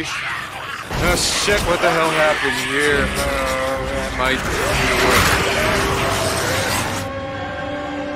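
A crowd of creatures snarls and shrieks loudly.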